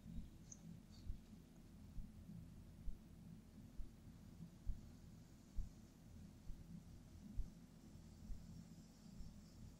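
A paintbrush swishes softly against a wall.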